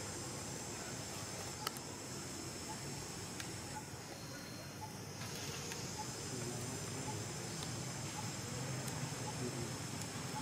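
A monkey climbs through leafy branches, rustling the leaves.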